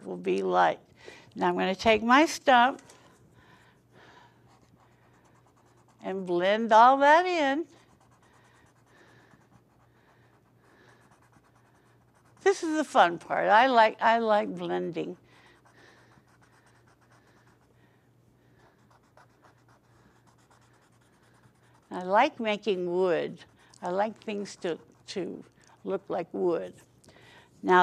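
An elderly woman talks calmly in short bursts, close to a microphone.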